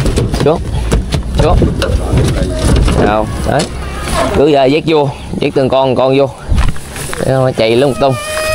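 A man talks nearby outdoors.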